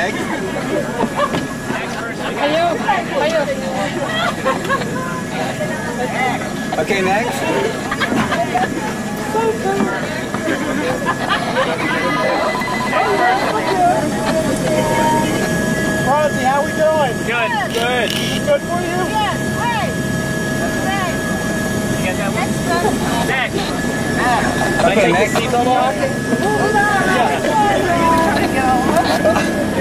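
Several men and women talk and exclaim excitedly nearby.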